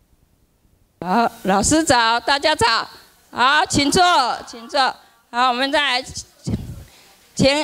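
A woman speaks close by, in short phrases.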